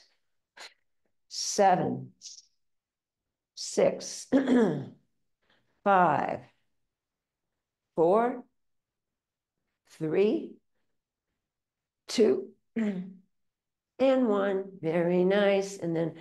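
An elderly woman speaks clearly into a microphone, giving calm instructions in short phrases.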